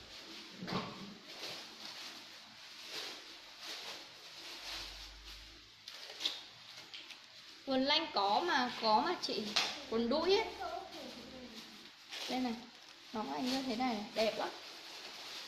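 Fabric rustles as clothes are handled.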